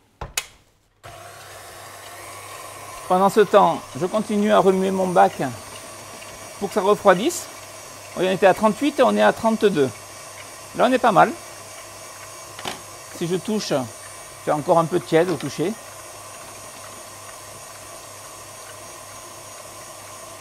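An electric stand mixer whirs steadily.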